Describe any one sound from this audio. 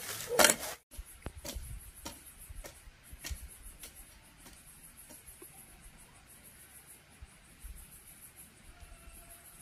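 A rake scrapes across dry soil in the distance.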